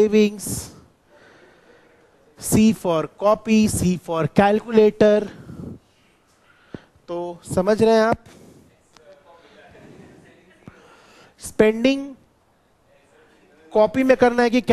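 A young man explains with animation, close to a microphone.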